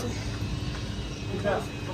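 A freezer hums steadily.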